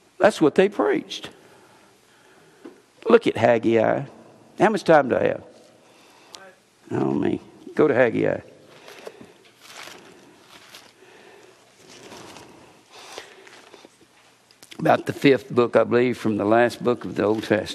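An older man speaks calmly into a microphone, pausing between phrases.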